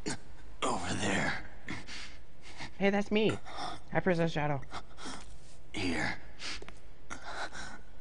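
A wounded man speaks weakly and haltingly, gasping for breath.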